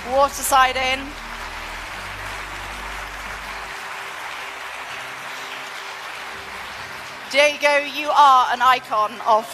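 A woman speaks with animation through a microphone and loudspeakers in a large hall.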